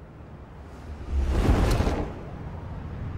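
A cape flaps and whooshes through the air.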